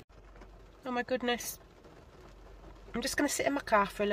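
Raindrops patter on a car windscreen.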